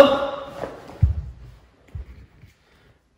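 Bare feet thump on the floor.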